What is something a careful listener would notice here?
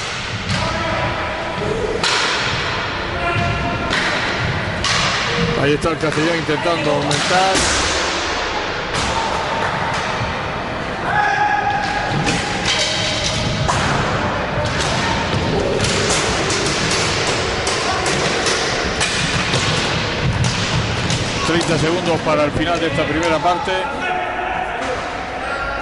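Skate wheels roll and rumble across a wooden floor in a large echoing hall.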